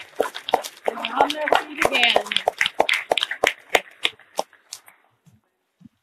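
A crowd claps and cheers in a large room.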